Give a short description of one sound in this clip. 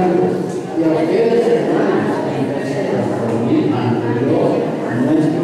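An elderly man speaks steadily into a microphone, heard through a loudspeaker in an echoing room.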